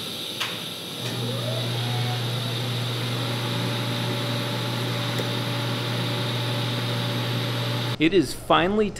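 A welder buzzes steadily.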